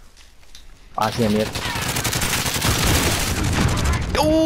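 An explosion booms loudly and rumbles on.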